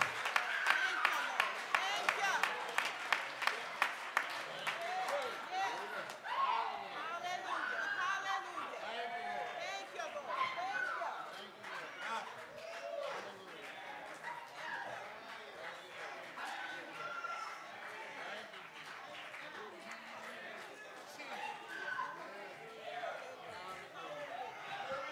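Men and women in a crowd talk and call out in a large echoing hall.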